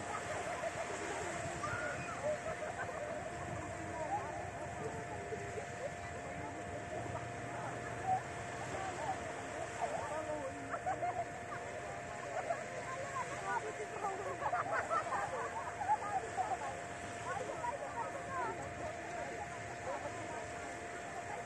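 Small waves lap gently on a sandy shore, outdoors.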